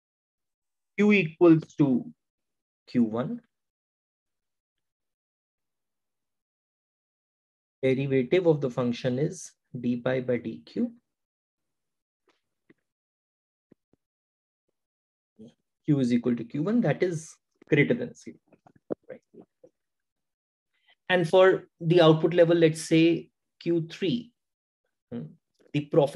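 An adult man explains calmly, close to a microphone, in short bursts with pauses.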